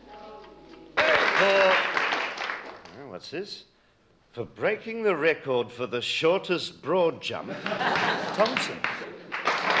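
An elderly man speaks with animation to an audience.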